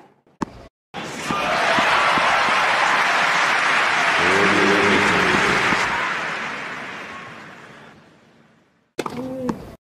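A crowd applauds loudly in a large arena, then fades.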